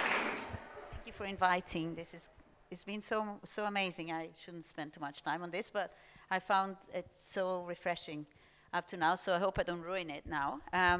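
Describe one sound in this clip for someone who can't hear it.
A middle-aged woman speaks calmly through a microphone.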